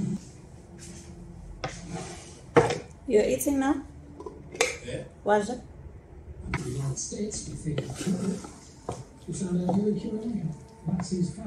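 A metal spoon scrapes and knocks against a pot.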